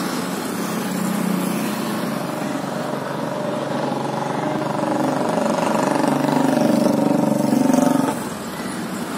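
A distant locomotive engine drones steadily, then cuts off.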